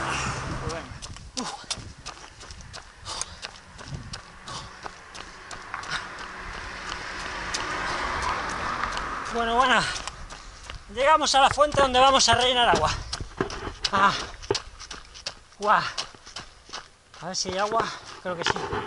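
Running footsteps slap on pavement.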